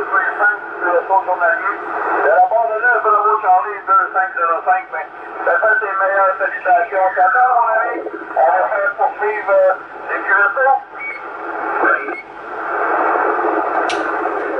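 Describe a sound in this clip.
A radio receiver hisses with static.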